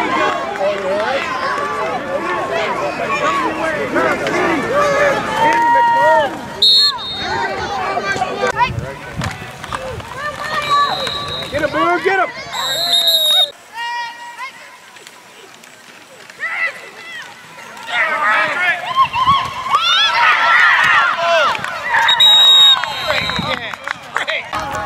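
A crowd of adults and children shouts and cheers nearby outdoors.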